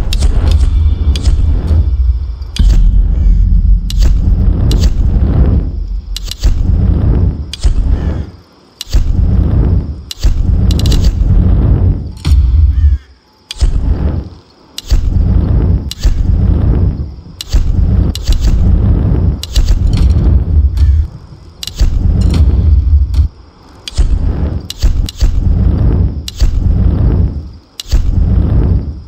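Short interface clicks sound again and again as menu items are chosen.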